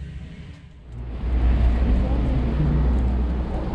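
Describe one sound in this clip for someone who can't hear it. Outdoors, wind rumbles against the microphone.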